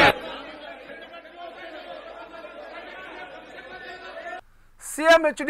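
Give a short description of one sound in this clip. A man speaks forcefully, heard through a microphone.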